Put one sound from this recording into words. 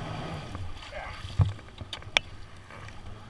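A hand slaps and splashes the water once.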